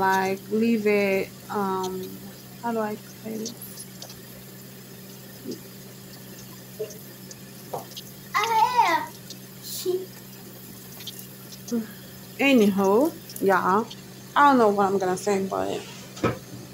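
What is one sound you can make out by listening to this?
Shower water sprays and splashes steadily.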